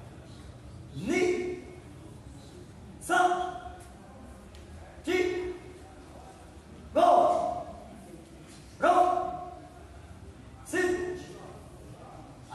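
Children shout counts together in unison, one shout every two seconds, in an echoing hall.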